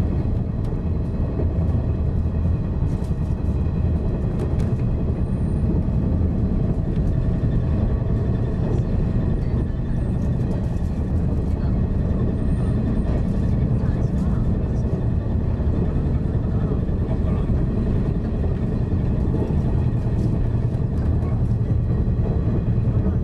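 A train rumbles steadily along the rails, heard from inside the cab.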